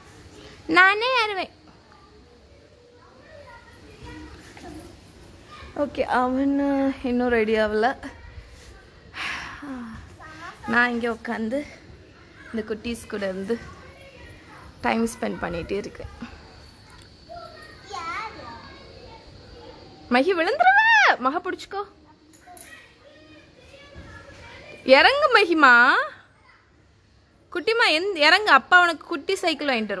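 A young girl talks and calls out excitedly nearby.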